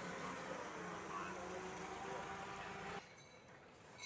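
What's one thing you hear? A forklift engine runs nearby.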